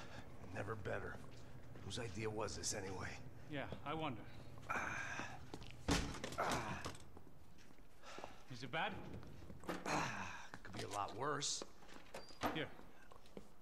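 A man speaks in a low, weary voice.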